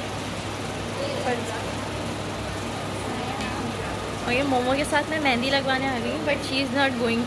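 A young woman speaks close to the microphone in a soft, animated voice.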